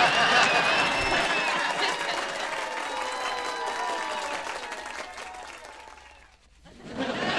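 Two men laugh loudly together.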